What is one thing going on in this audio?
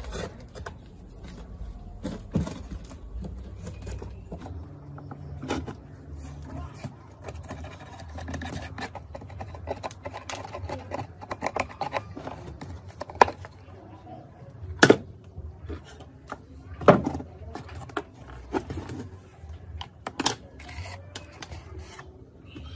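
A plastic pick scrapes and scratches at a grimy plastic case.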